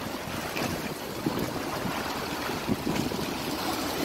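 Scissors snip through a fish.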